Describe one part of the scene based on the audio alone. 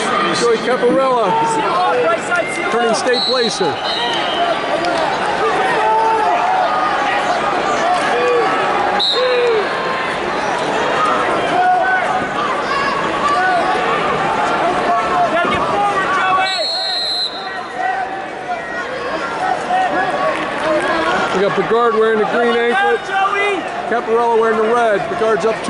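A large crowd shouts and cheers in a big echoing hall.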